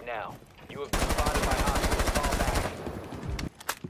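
Rapid gunfire rattles in short, loud bursts.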